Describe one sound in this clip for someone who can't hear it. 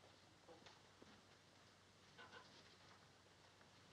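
A woman's heels click on a hard floor as she walks away.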